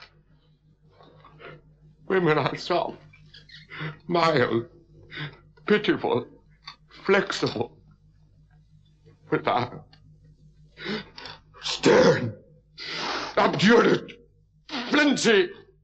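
An elderly man speaks slowly and dramatically, with long pauses.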